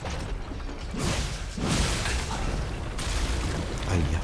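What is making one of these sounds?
A sword clangs against metal with sharp ringing strikes.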